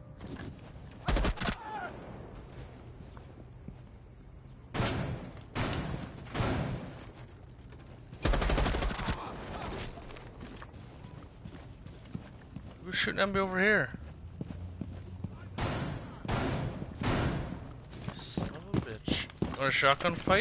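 Gunshots crack in short, loud bursts.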